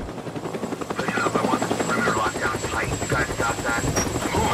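A man speaks sternly.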